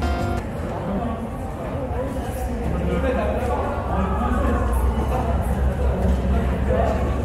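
Footsteps and distant chatter echo through a large hall.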